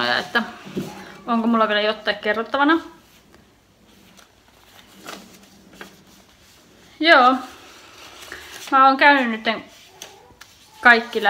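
A young woman speaks calmly and softly, close by, with pauses between phrases.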